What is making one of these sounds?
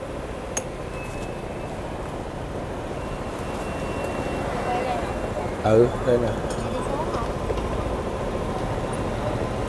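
Street traffic hums steadily outdoors.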